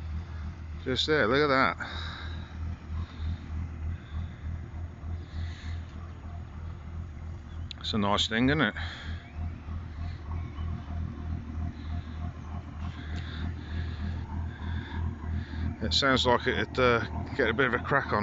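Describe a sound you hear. A motorboat engine rumbles low and steady nearby.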